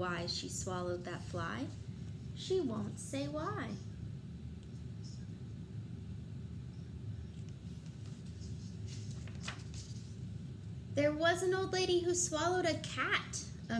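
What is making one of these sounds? A young woman reads a story aloud close by, with lively expression.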